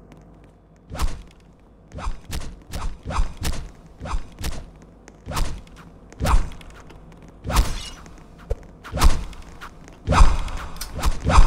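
Punches land with short, sharp thuds again and again.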